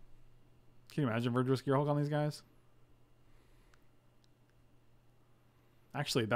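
A man speaks loudly in a drawn-out voice close to a microphone.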